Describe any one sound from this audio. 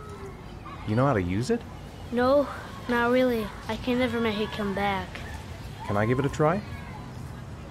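A young boy speaks softly.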